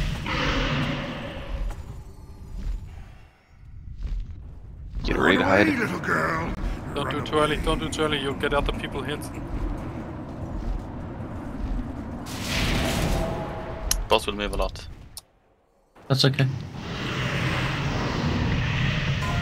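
Spell effects crackle and boom during a game battle.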